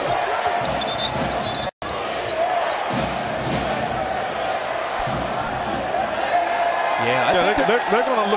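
A large indoor crowd murmurs and cheers, echoing through an arena.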